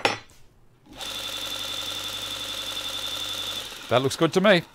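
A belt sander motor hums steadily, then stops.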